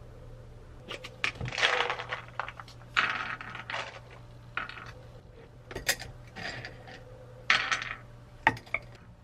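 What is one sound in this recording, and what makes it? Nuts rattle as they are poured from a glass jar onto a wooden board.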